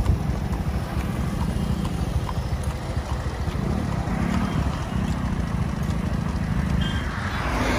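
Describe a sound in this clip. Horse hooves clop on the road.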